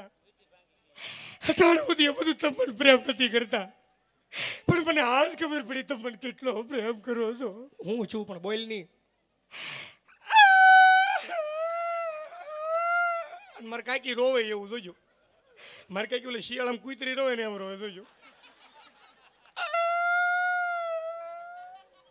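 A crowd of women laughs loudly.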